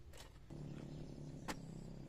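Soil scrapes as a shovel digs into it.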